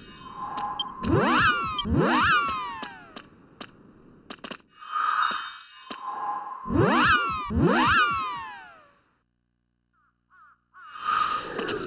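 A magic spell whooshes and chimes with swooping sweeps that rise and fall.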